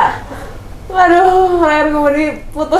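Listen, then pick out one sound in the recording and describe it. A young woman speaks brightly, close by.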